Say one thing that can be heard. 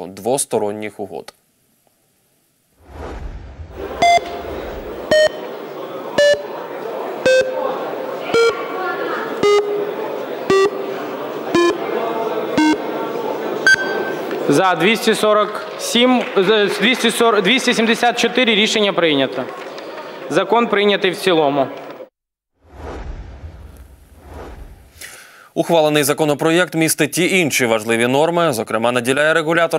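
A young man speaks calmly and clearly, as a news presenter.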